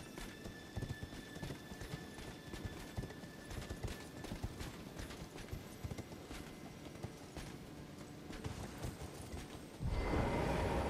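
Horse hooves thud steadily on dirt.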